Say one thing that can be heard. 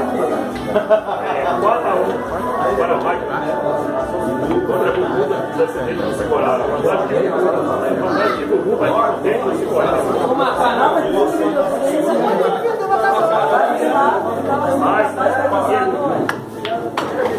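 A crowd of young men talks and chatters loudly nearby.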